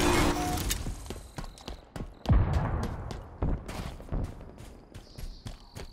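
Gunshots boom and echo in quick bursts.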